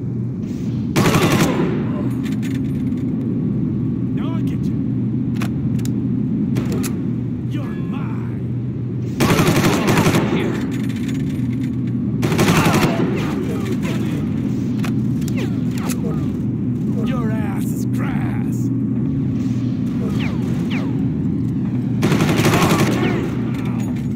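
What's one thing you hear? Bursts of rifle fire ring out in a hard echoing corridor.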